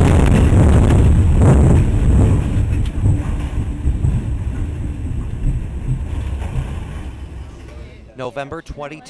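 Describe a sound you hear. Strong wind roars and buffets loudly, then dies away.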